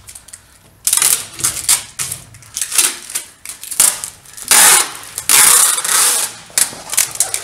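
A blade scrapes plastic film off a glass pane in harsh, rasping strokes.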